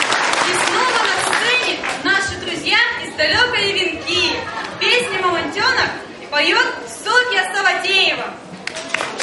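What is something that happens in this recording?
A girl speaks with animation into a microphone, heard over loudspeakers in an echoing hall.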